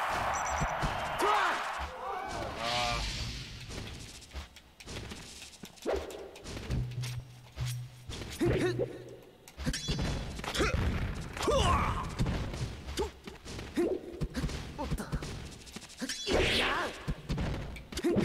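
Video game fighters clash with punchy hit and whoosh sound effects.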